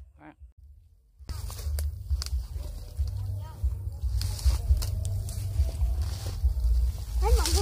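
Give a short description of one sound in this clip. A small child's footsteps rustle through grass and dry leaves.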